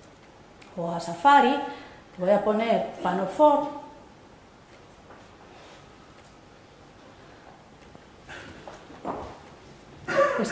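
A woman speaks in a room with a slight echo, in short bursts with pauses.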